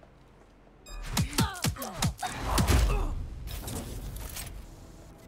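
Blows land with heavy thuds in a brief fight.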